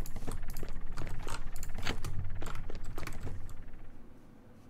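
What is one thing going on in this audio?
Computer keys click rapidly nearby.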